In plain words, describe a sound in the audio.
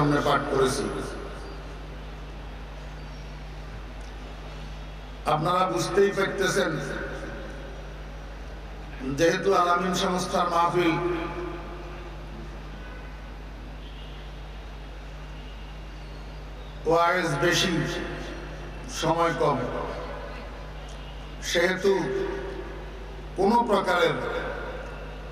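A man preaches loudly through a microphone and loudspeakers in bursts, with echo.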